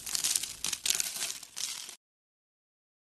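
Crunchy beads crackle and crunch as fingers squeeze them.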